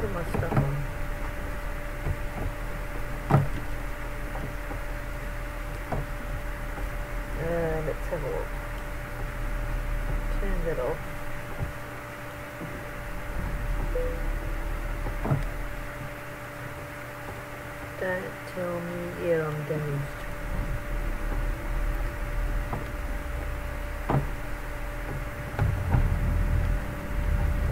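Windscreen wipers sweep across the glass.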